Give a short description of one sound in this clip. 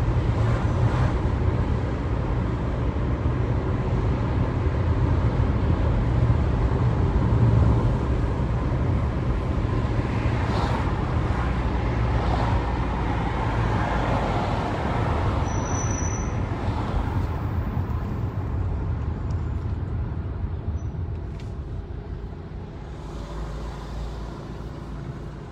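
Tyres roll on asphalt and quiet down toward the end.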